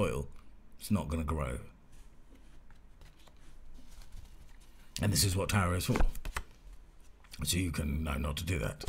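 A middle-aged man speaks calmly and close to a microphone, in short bursts.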